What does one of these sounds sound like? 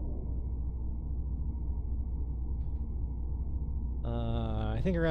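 A spaceship's engine hums low and steady.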